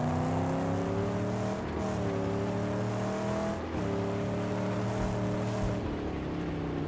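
A car engine roars steadily, its pitch shifting with gear changes.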